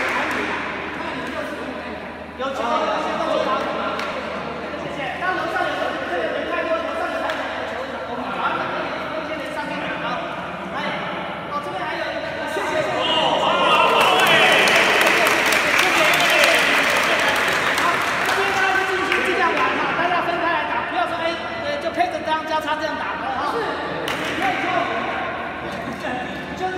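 A man speaks loudly to a group in a large echoing hall.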